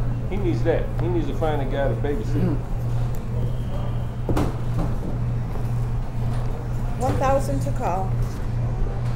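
A man talks briefly nearby.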